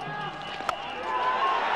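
A cricket bat cracks sharply against a ball.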